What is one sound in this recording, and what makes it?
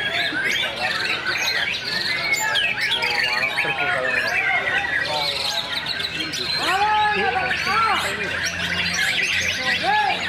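A caged songbird sings loud, varied chirping and whistling phrases.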